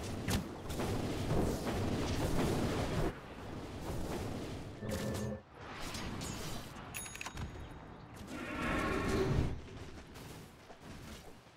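Game battle effects clash and crackle.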